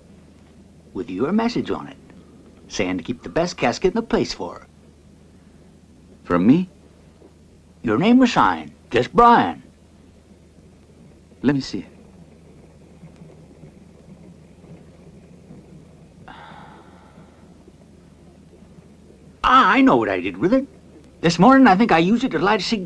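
An older man talks in a slow, drawling voice close by.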